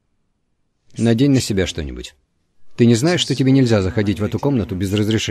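A man speaks in a low, calm voice, close by.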